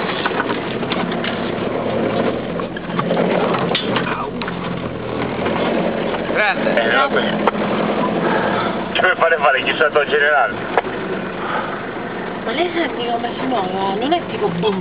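A vehicle engine rumbles steadily nearby.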